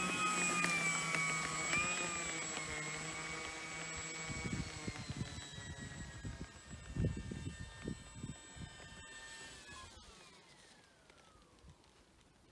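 A model plane's engine whines loudly, moves away and fades, then winds down in pitch.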